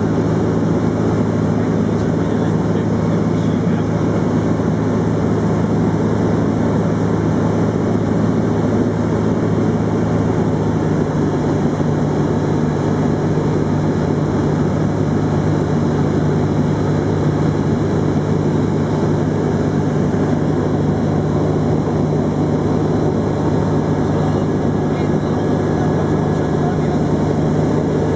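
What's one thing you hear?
Wind rushes past the cockpit.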